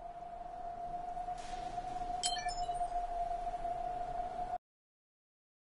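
A steady electronic hum drones softly.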